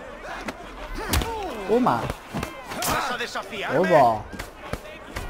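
Fists land heavy punches with dull thuds.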